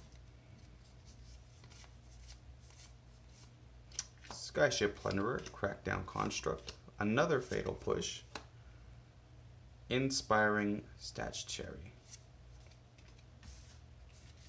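Playing cards rustle and slide against each other.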